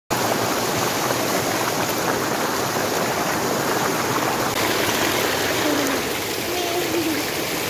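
Water rushes and splashes loudly over rocks close by.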